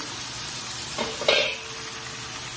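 A metal lid clanks as it is set down.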